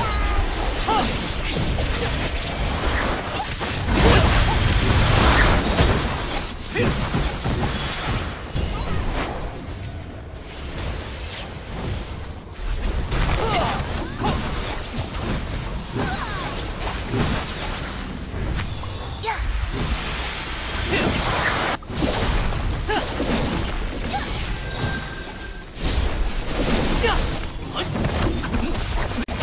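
Game weapons clash and strike in quick bursts.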